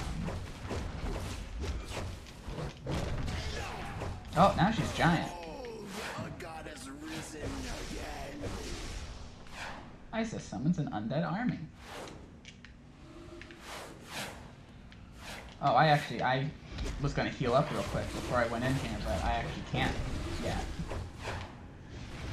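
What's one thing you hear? Game combat effects clash and whoosh.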